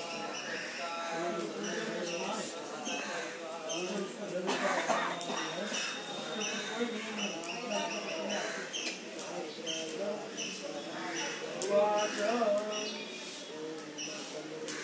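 A man chants a prayer in a steady voice close by.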